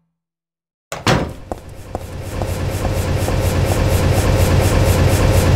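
Footsteps run quickly across a hard tiled floor.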